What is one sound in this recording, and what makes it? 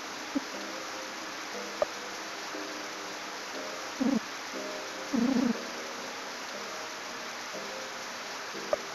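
Soft electronic melody music plays steadily.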